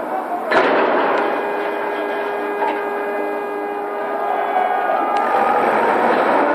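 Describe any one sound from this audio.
A toppling crane's metal frame creaks and groans loudly.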